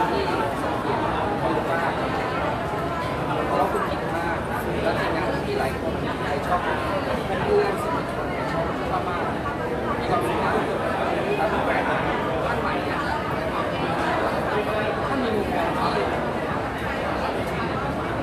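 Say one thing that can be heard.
A crowd murmurs and chatters all around in a busy echoing space.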